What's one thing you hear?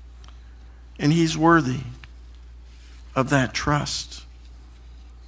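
A man speaks calmly into a microphone, heard through a loudspeaker in an echoing hall.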